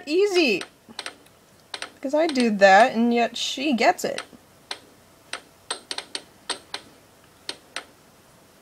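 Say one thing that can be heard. An air hockey puck clicks sharply as mallets strike it and it bounces off the rails.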